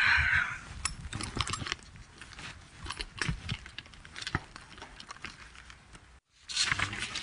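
A handbag rustles as it is handled.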